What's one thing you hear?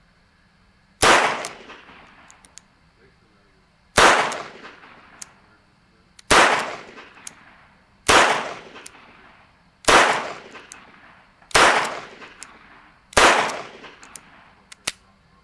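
A revolver fires loud shots one after another outdoors, each echoing away.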